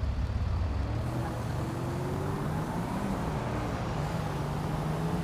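A car engine revs up as the car pulls away.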